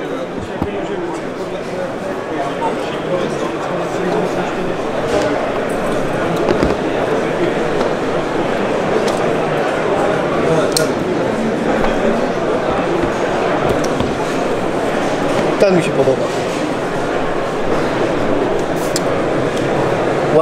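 A knife clicks faintly as a man picks it up and sets it down.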